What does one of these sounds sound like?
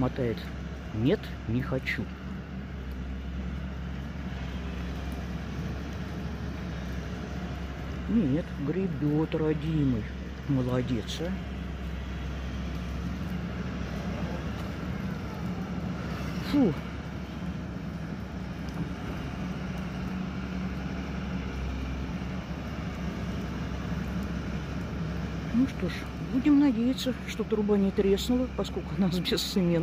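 A heavy diesel engine rumbles steadily nearby.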